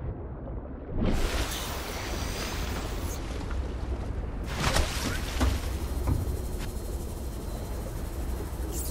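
Water splashes and laps loudly as a swimmer breaks the surface.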